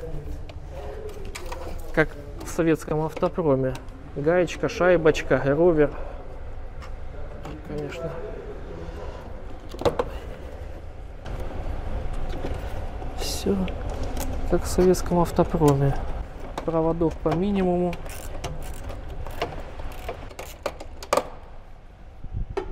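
Plastic and metal parts click and knock as a man works on a car dashboard.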